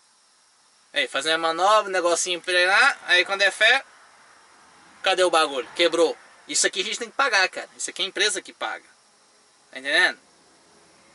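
A man talks casually and close by.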